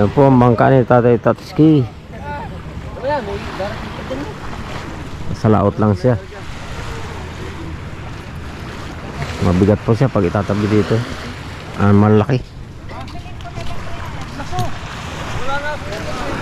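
Small waves wash gently onto the shore.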